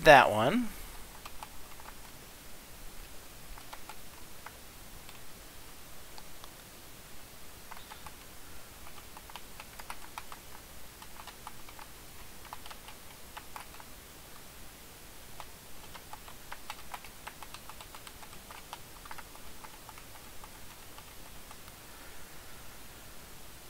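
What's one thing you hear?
Short, soft game sound effects tick and blip now and then as a character attacks.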